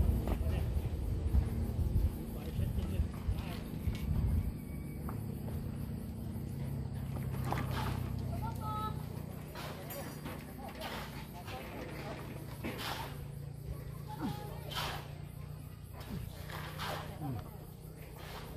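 Plastic pipes knock and scrape as they are fitted together.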